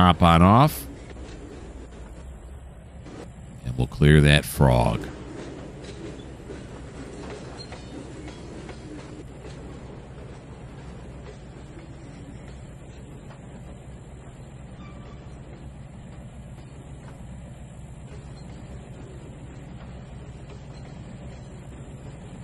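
A freight train rolls slowly along the tracks with a steady low rumble.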